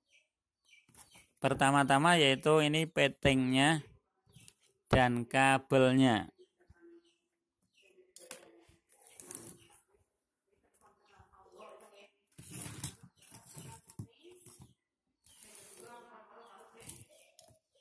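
Hard plastic parts knock and rattle as they are handled.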